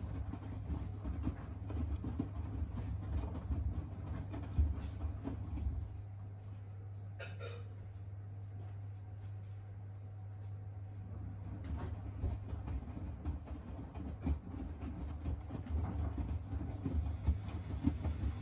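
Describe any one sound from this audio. Wet laundry sloshes and thumps inside a washing machine drum.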